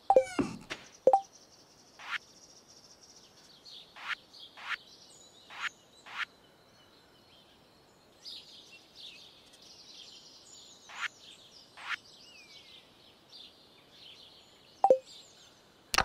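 Short menu clicks and swishes from a game sound every second or two.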